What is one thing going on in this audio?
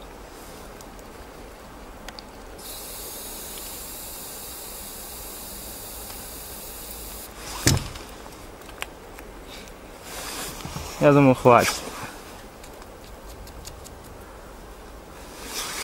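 A bicycle chain and gears click as a hand turns the crank.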